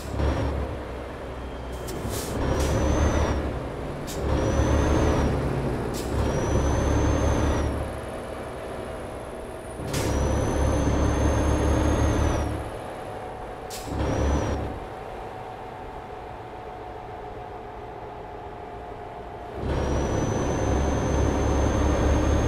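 A heavy diesel truck engine pulls in bursts, easing off between them.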